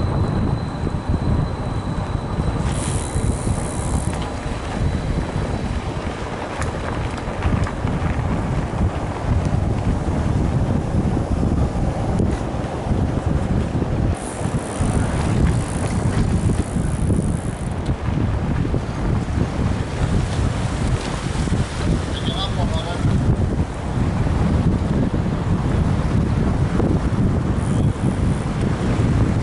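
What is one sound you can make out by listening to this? Wind buffets a microphone outdoors throughout.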